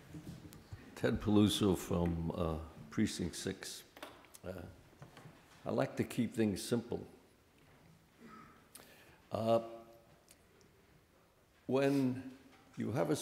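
An elderly man speaks into a microphone, heard over loudspeakers in a large echoing hall.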